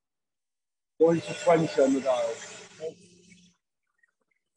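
A man speaks briefly through an online call.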